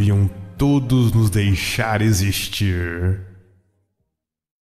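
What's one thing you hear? A man speaks in a deep, resonant voice, close to a microphone.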